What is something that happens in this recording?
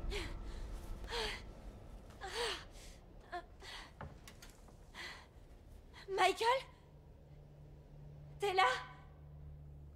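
A young woman speaks in short, breathless bursts.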